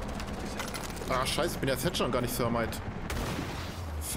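A loud blast booms and debris clatters.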